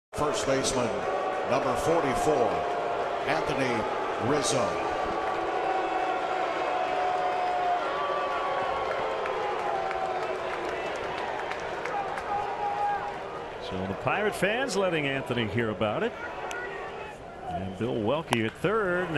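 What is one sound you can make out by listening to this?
A large stadium crowd murmurs and cheers outdoors.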